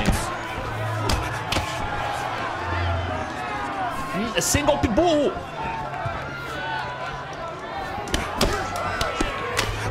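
Punches land with sharp thuds.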